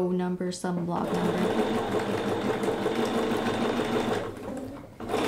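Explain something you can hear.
A sewing machine runs with a steady, fast whirr.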